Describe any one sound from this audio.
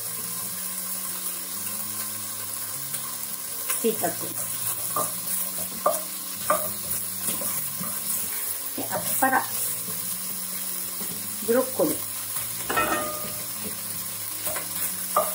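A wooden spatula scrapes and knocks against a pot.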